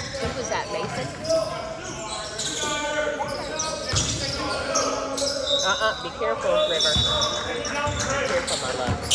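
Basketballs bounce with hollow thuds on a wooden floor in a large echoing hall.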